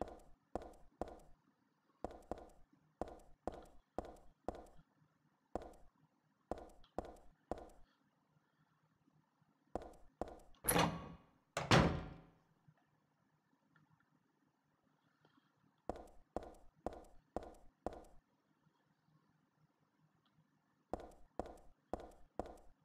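Footsteps tap steadily on a hard floor in bursts.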